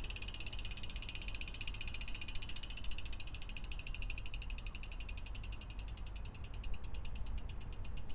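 A bicycle freewheel ticks rapidly as the rear wheel spins, slowing gradually.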